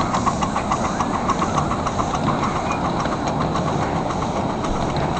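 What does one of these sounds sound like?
A passing train rumbles steadily.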